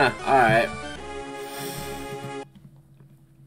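A short video game jingle plays.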